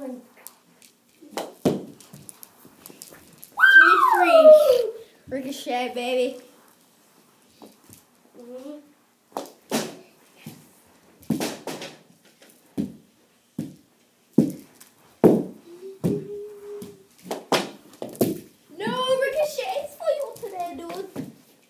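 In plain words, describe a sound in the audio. A hockey stick smacks a ball with sharp clacks.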